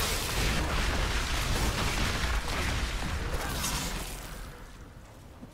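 Magic spells crackle and whoosh in a noisy fight.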